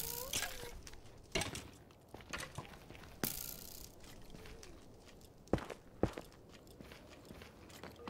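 A pickaxe chips at rock in quick knocks.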